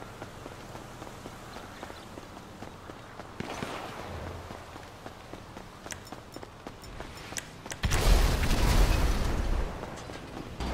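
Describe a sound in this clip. Quick footsteps patter on pavement as someone runs.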